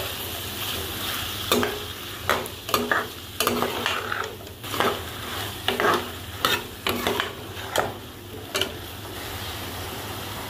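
Food sizzles in a pan.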